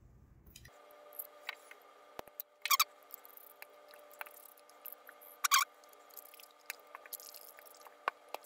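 A screwdriver clicks and scrapes against small plastic parts.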